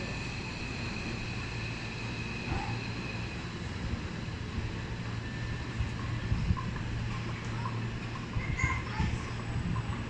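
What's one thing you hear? A train pulls away from a platform with a low rumble.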